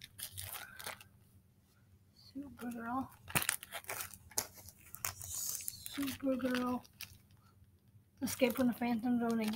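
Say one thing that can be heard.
A plastic comic sleeve crinkles in a girl's hands.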